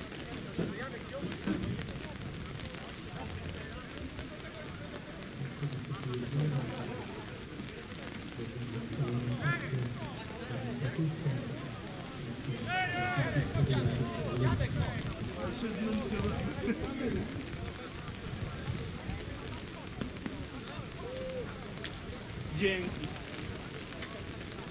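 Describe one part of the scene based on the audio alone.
Men shout and call to each other across an open field outdoors.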